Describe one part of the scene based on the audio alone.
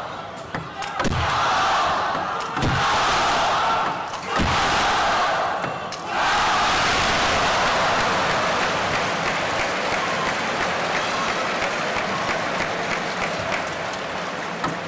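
A large indoor crowd cheers and roars loudly.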